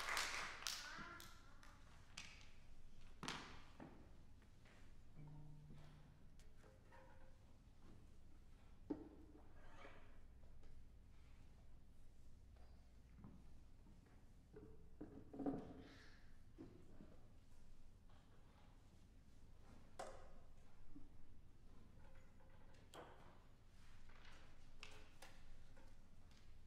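A cello bumps and knocks softly as it is set in place, in an echoing hall.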